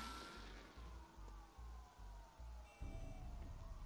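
Footsteps fall slowly on pavement.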